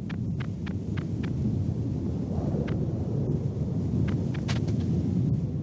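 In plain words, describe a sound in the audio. Footsteps crunch on snow in short bursts.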